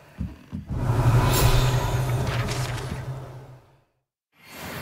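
A magic spell crackles and sizzles with a burst of sparks.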